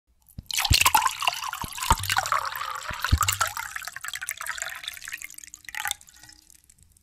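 Wine splashes and gurgles as it pours into a glass.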